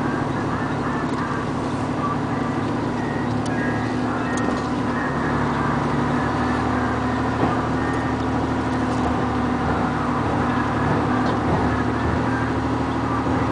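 A diesel truck engine rumbles steadily close by.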